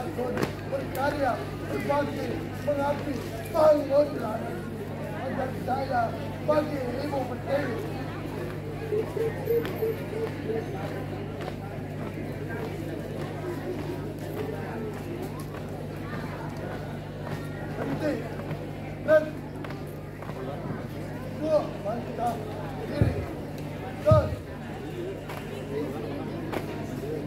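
Marchers stamp their feet in step on hard pavement.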